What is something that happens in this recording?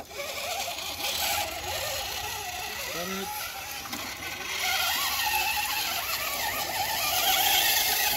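The electric motor of a radio-controlled rock crawler whines as the crawler climbs over rock.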